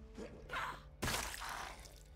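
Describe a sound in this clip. A heavy blow lands with a dull thud.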